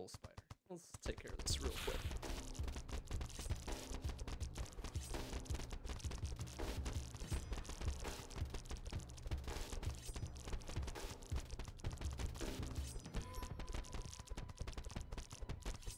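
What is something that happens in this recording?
Steady, rhythmic game music plays.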